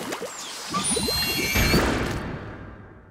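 Thick ink bursts with a loud wet splash.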